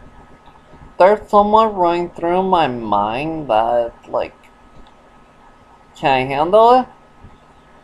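A young man speaks calmly and close to the microphone, in short bursts.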